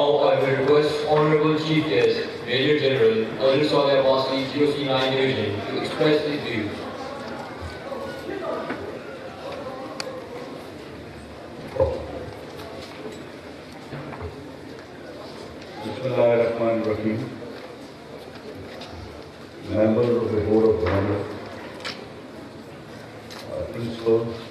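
A middle-aged man speaks formally through a microphone and loudspeakers, outdoors with echo.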